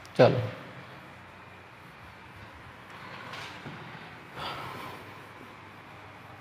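A duster rubs across a whiteboard with a soft, scratchy swish.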